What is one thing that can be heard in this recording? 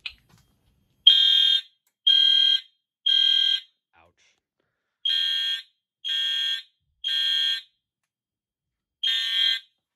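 Fire alarm horns blare in loud, evenly spaced beeps.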